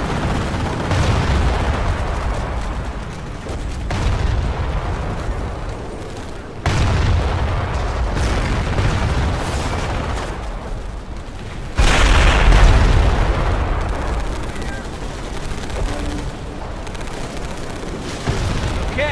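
Gunfire crackles steadily in the distance.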